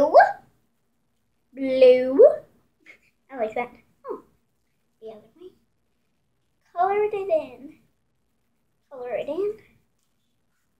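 A young girl talks playfully, close by.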